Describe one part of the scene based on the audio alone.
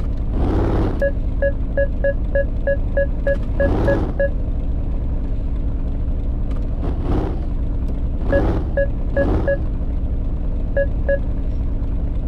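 A parking sensor beeps in quick bursts as the car nears another vehicle.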